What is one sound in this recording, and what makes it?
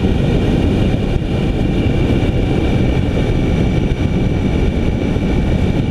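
A vehicle drives steadily along a road at speed, with a low rumble of engine and tyres.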